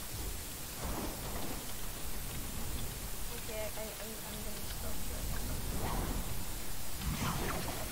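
Wind rushes loudly past during a fast fall through the air.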